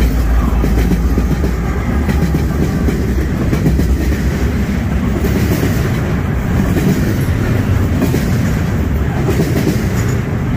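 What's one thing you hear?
A freight train rumbles past close by, its wheels clattering on the rails.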